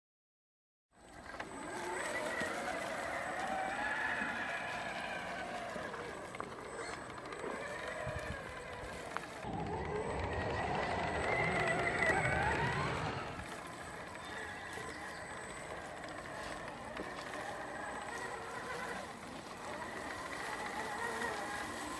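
A small electric motor whines, rising and falling in pitch as it revs.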